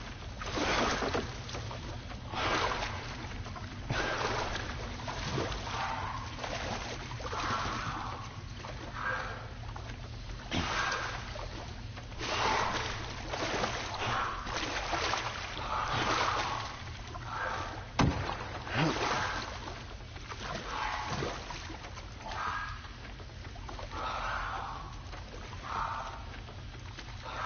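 Water splashes and sloshes as a person wades and swims through it.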